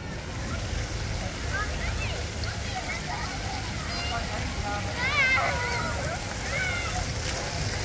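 Children shout and squeal while playing.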